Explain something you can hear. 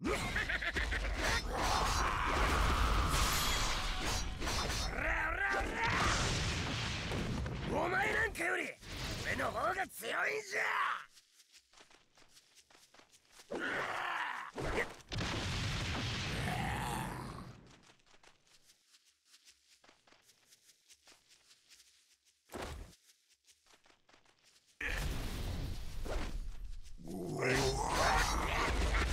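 Heavy blows land with loud whooshing crashes.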